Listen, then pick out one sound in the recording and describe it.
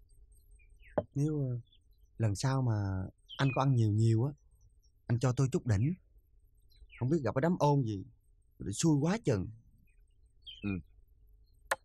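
A second middle-aged man answers with animation.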